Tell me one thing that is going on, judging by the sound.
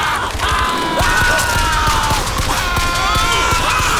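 A gun fires a burst of loud shots.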